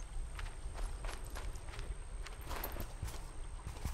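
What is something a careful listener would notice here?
Water trickles in a stream.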